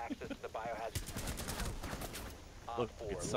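Rapid gunfire rattles in a short burst.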